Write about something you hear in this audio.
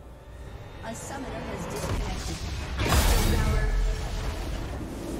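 Magic spells crackle and blast in a video game battle.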